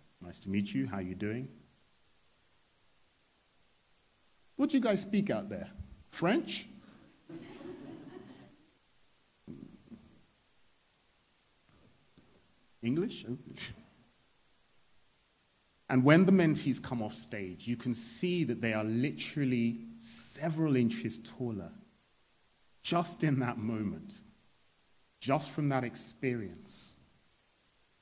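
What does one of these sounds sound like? A man speaks with animation into a microphone, with pauses.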